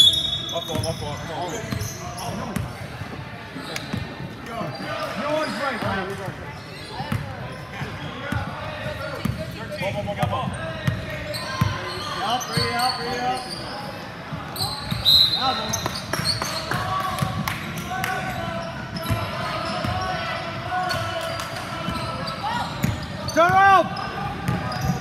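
Sneakers squeak sharply on the court.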